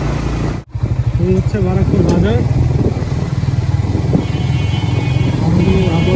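A motorcycle engine idles and rumbles steadily up close.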